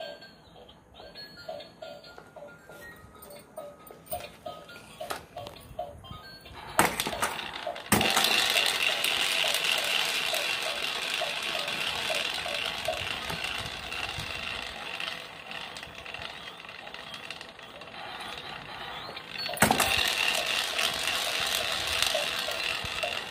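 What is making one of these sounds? A toy plays a beeping electronic tune.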